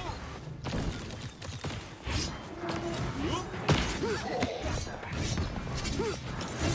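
Weapons fire in quick bursts with sharp blasts.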